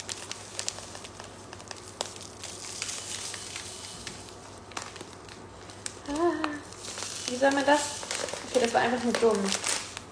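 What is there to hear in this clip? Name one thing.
A plastic bag crinkles as food is poured from it.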